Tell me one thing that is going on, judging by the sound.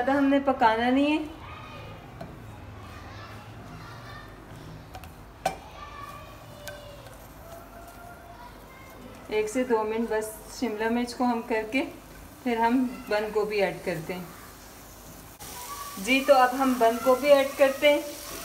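Green pepper strips sizzle in a frying pan.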